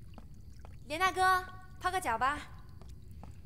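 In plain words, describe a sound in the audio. A young woman speaks cheerfully nearby.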